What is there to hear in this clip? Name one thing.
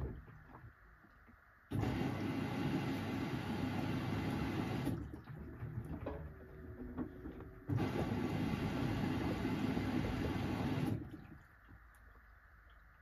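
A washing machine drum turns, tumbling laundry.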